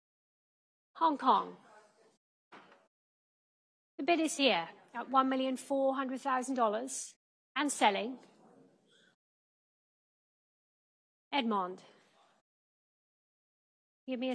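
A woman speaks clearly through a microphone, announcing in a lively voice.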